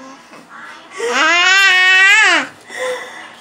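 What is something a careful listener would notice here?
A toddler screams loudly up close.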